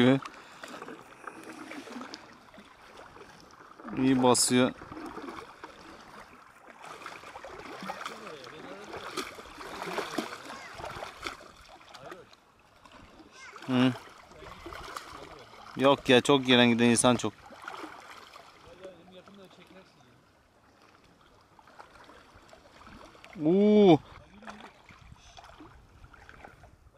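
A fishing reel clicks as it is wound.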